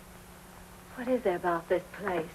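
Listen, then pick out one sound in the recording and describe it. A young woman speaks clearly and calmly, close by.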